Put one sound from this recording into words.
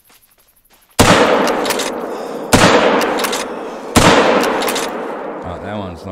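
A hunting rifle fires three loud shots that echo and roll away.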